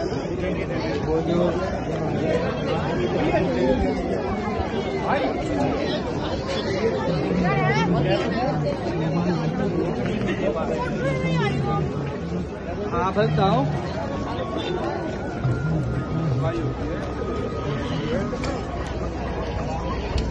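A dense crowd chatters and murmurs outdoors.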